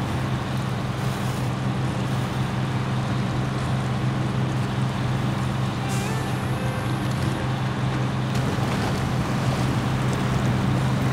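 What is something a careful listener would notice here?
A heavy diesel truck engine drones under load.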